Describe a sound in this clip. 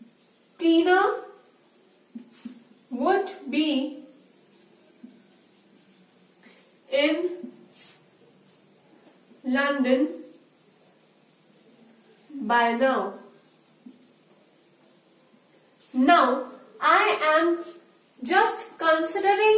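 A young woman speaks clearly and calmly, as if teaching, in short phrases close to a microphone.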